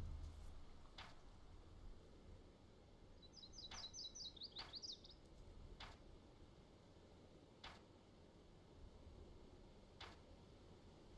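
Short sharp clicks sound now and then.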